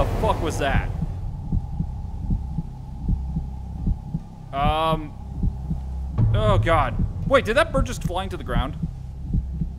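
A man speaks into a microphone in short bursts, with animation.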